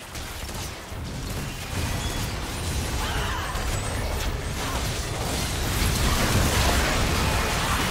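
Game impacts thud in quick bursts.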